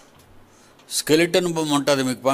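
An elderly man speaks calmly and loudly into a microphone.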